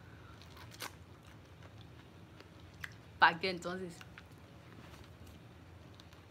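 A young woman crunches a bite of food.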